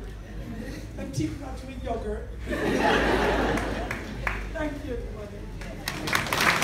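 A woman speaks emotionally into a microphone in an echoing room.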